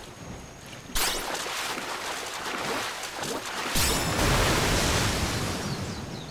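Water splashes loudly as a fish is pulled out.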